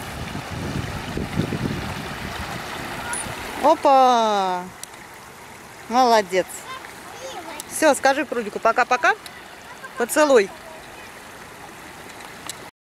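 Shallow water trickles over stones.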